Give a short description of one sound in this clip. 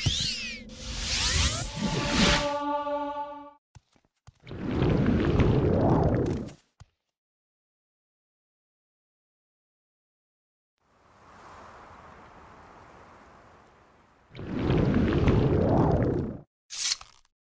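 A magic spell bursts with a loud whooshing rush.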